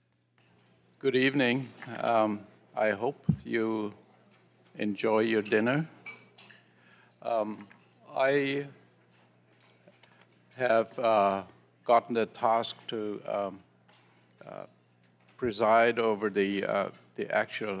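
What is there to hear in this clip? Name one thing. An elderly man speaks calmly into a microphone over a loudspeaker.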